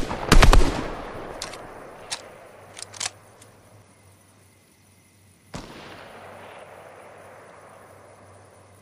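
Gunshots crack in quick bursts, echoing away.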